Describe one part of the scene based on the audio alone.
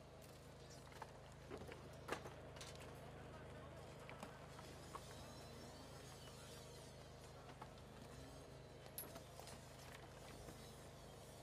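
Debris knocks and clatters now and then.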